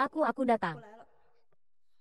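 A young man speaks close by in a tense, animated voice.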